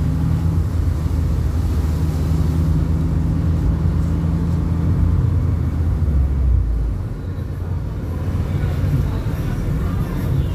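A car engine rumbles, heard from inside the car.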